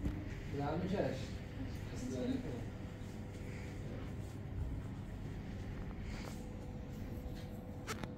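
Footsteps pad softly across a floor.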